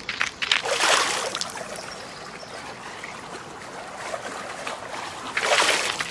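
Water splashes as a bicycle rides through it.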